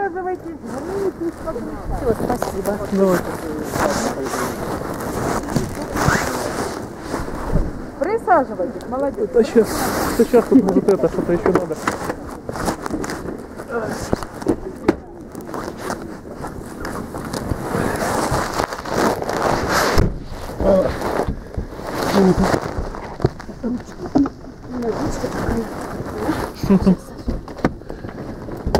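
Fabric rustles and scrapes right against the microphone.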